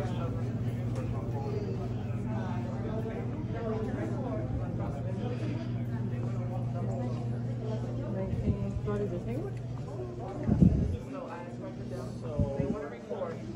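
Several adults talk in a large echoing room.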